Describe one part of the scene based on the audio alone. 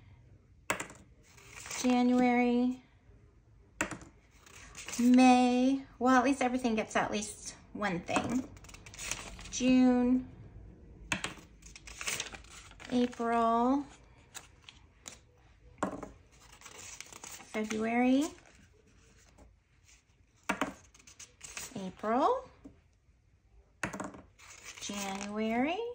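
Paper bills rustle.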